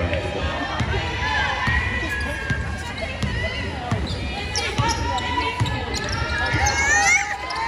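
A basketball bounces on the hardwood floor.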